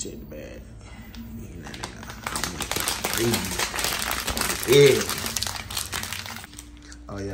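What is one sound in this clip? A plastic snack bag crinkles and rustles in a hand.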